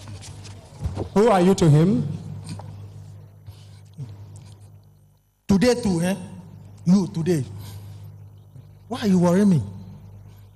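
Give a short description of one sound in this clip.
A man shouts and wails loudly into a microphone, heard through loudspeakers in an echoing hall.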